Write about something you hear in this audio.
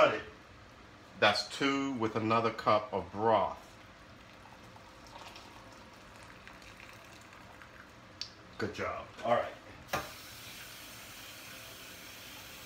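Food simmers softly in a pan.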